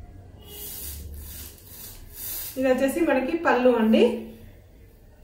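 Thin fabric rustles softly as it is lifted and draped.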